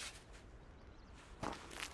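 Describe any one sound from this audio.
A shovel scrapes into soil.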